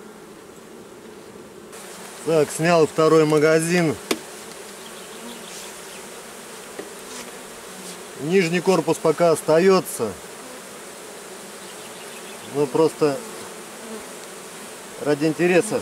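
Bees buzz in a low steady hum.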